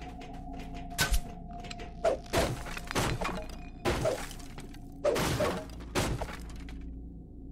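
Wooden barrels smash and splinter with heavy blows.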